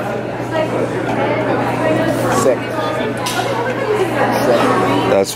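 Several women chatter nearby in a large echoing hall.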